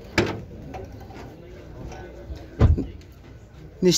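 A car boot lid clicks open.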